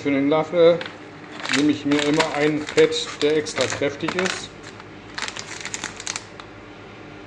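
A foil coffee bag crinkles and rustles.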